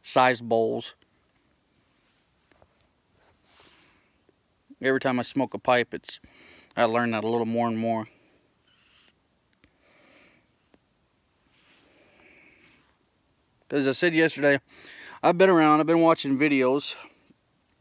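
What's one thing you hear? A man speaks calmly, close to the microphone, in short bursts with pauses.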